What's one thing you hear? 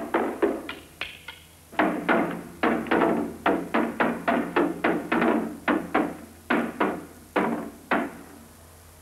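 A drum is beaten with sticks in sharp, rapid strokes, then stops.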